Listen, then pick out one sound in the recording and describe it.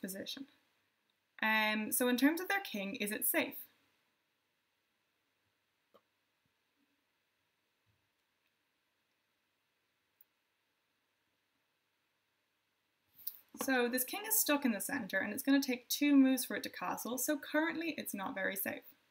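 A young woman speaks calmly and clearly into a close microphone, with pauses.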